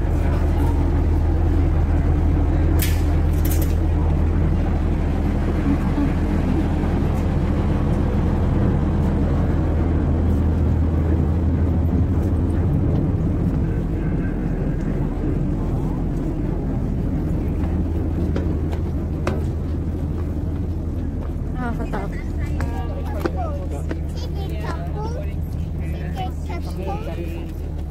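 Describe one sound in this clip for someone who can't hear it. A boat engine rumbles with a steady low drone.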